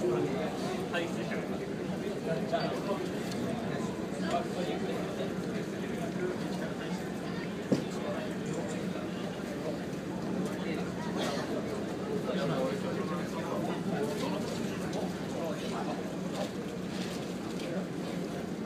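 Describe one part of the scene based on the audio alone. Waves wash against the hull of a moving boat.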